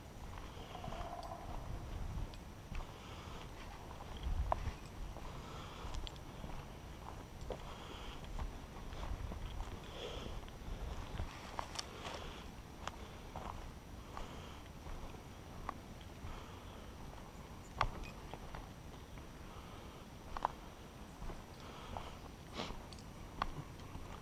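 Twigs and small stones click and crack under the tyres.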